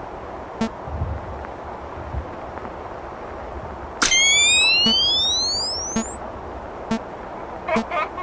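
Static hisses and crackles steadily.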